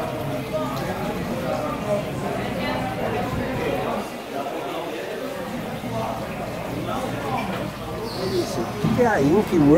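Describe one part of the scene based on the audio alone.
Many people chatter in a busy room.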